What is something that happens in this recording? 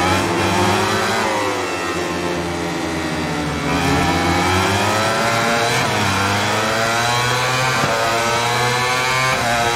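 A motorcycle engine roars at high revs, its pitch rising and falling through gear changes.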